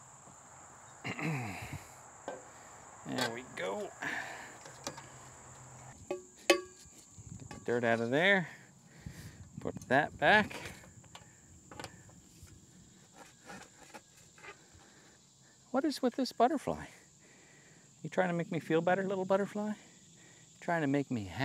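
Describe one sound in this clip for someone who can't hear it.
A man talks casually nearby, outdoors.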